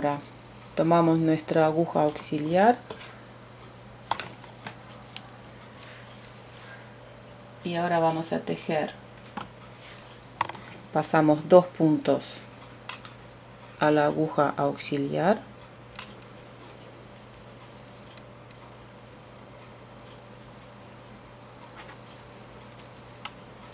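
Metal knitting needles click softly against each other.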